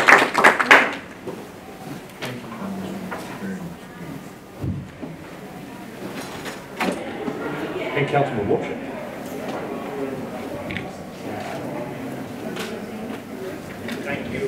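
Men talk quietly in a room with a slight echo.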